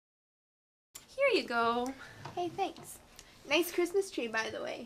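A second young woman answers calmly nearby.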